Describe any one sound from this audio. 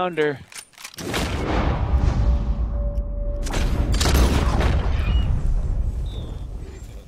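A rifle fires loud shots that echo outdoors.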